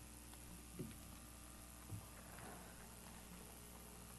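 Large paper sheets rustle as they are flipped over.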